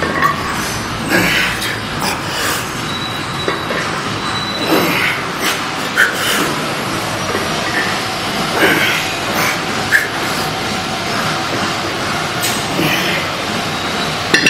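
A man grunts and strains as he lifts a heavy weight.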